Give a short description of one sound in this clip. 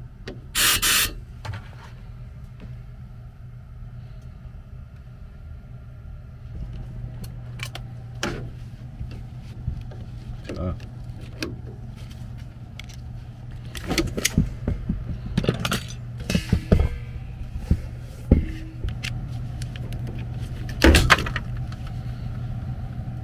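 A furnace hums steadily.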